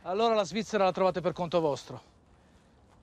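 A man speaks firmly nearby.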